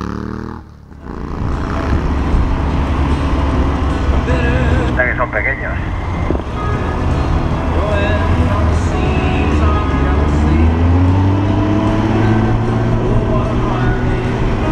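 A motorcycle engine rumbles steadily, rising slightly in pitch as it speeds up.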